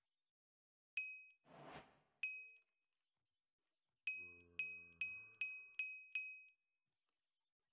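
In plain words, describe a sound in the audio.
Short bright chimes ring in quick succession in a game.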